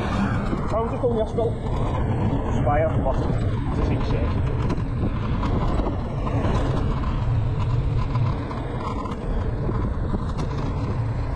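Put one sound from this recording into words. Tyres rumble steadily on a road as a car drives along.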